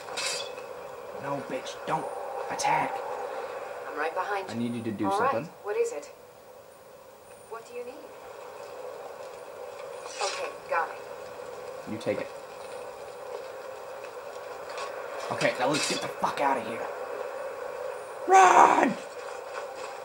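Clashes and grunts of a fight play through a small television speaker, in bursts.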